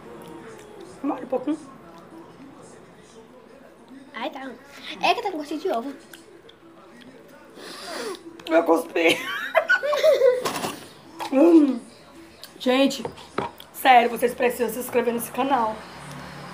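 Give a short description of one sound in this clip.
A young girl talks and laughs close by.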